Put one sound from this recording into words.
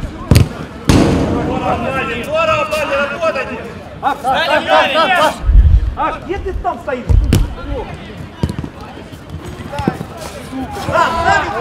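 Men shout and call out outdoors.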